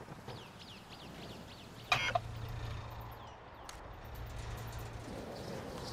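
Footsteps clang on a metal walkway.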